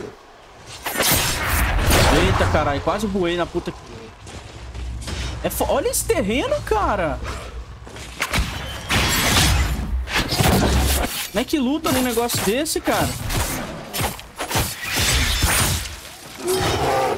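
Magic blasts burst with a whooshing roar.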